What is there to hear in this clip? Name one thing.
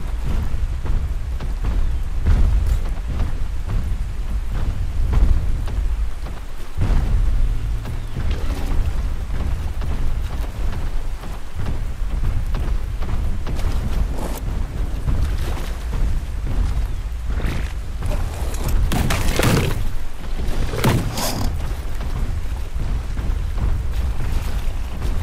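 Heavy footsteps thud on wet ground.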